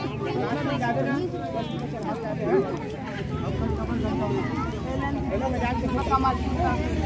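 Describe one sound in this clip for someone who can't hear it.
A crowd of women and children chatter nearby.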